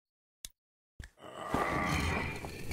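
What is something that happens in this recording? A heavy metal cover grinds and scrapes as it is pushed.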